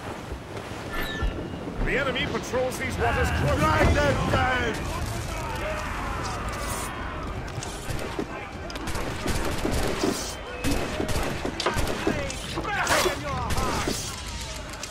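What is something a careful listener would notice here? Men shout over the battle.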